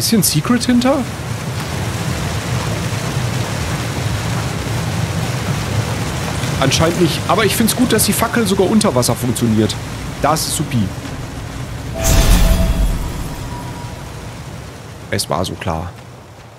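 Water pours down in a waterfall with a steady rush.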